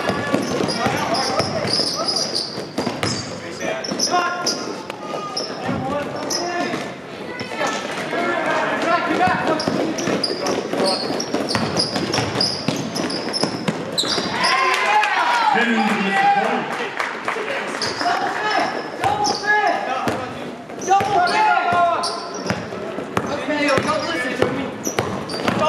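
Spectators and players shout and call out in a large echoing gym.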